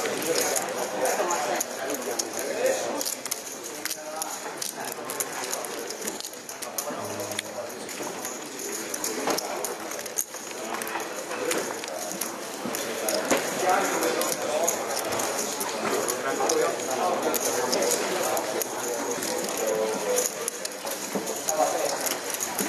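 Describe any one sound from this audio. Poker chips click and clack as they are stacked and shuffled.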